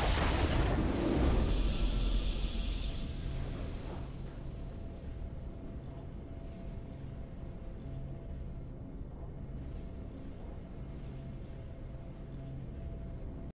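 A triumphant game fanfare plays and fades to a soft low hum.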